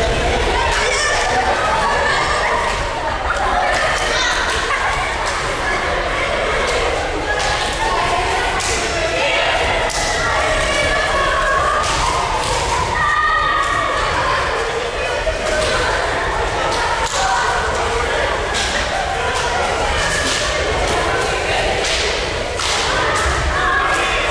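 Many children and adults chatter and shout in a large echoing hall.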